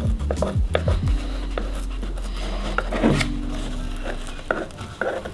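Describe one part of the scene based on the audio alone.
A screwdriver clicks and scrapes against a plastic part.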